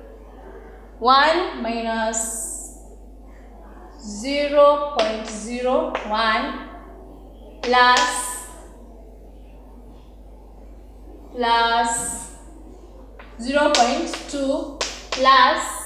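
A girl speaks aloud nearby in short bursts.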